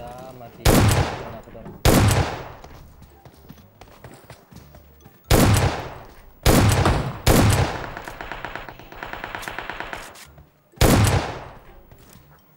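Loud shotgun blasts ring out one at a time, each echoing away.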